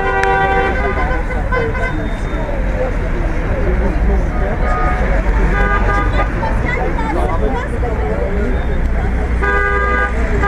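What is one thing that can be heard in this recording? A crowd of men and women murmurs and chats.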